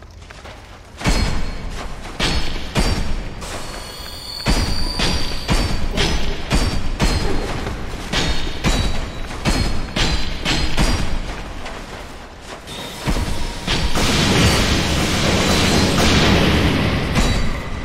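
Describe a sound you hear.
A sword swings and clashes against metal.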